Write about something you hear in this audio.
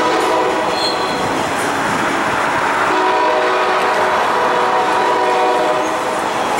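A long freight train rumbles steadily past on the tracks.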